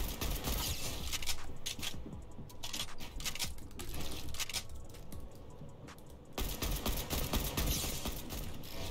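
Wooden building pieces clatter quickly into place.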